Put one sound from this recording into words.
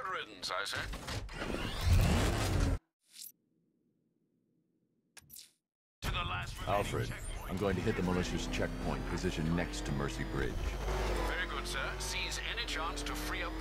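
A powerful car engine roars and revs.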